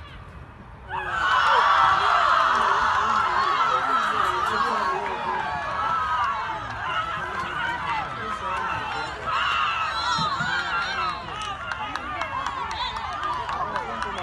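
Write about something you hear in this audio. A crowd of spectators cheers and screams loudly outdoors.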